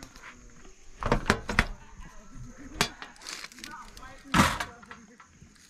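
A vehicle door clunks and rattles as it opens.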